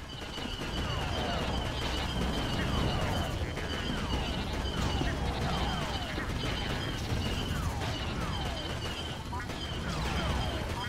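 Laser blasters fire in quick, repeated zaps.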